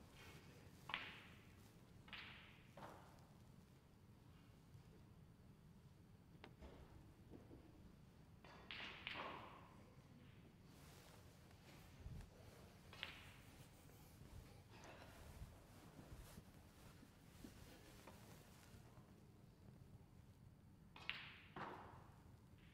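Snooker balls click sharply against each other now and then.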